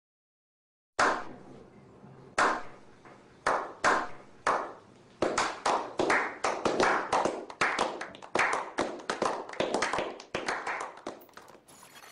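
A small group of men clap their hands.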